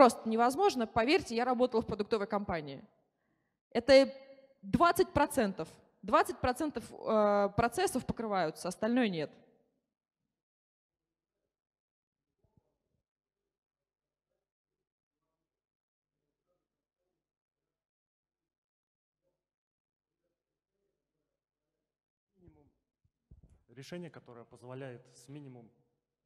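A young woman speaks calmly into a microphone, heard through loudspeakers in a large room.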